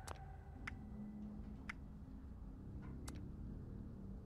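Short electronic menu clicks sound as options are selected.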